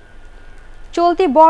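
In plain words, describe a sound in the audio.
A young woman reads out the news calmly into a microphone.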